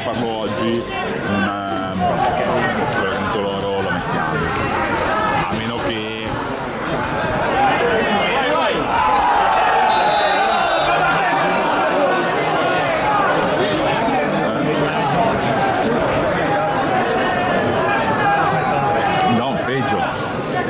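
A crowd chatters and calls out across an open-air stadium.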